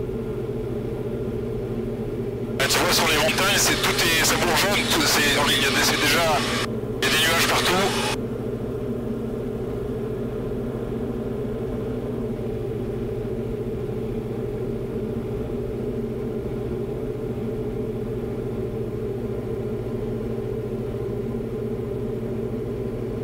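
A small plane's engine drones steadily throughout.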